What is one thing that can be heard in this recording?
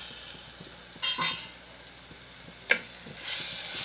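A spatula scrapes and knocks against a metal pot.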